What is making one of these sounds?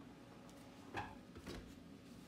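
An oven door thuds shut.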